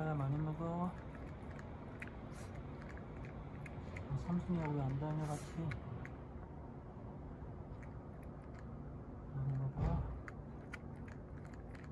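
A cat chews and laps food from a bowl up close.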